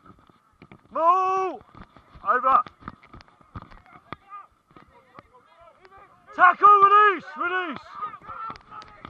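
Men shout loudly outdoors.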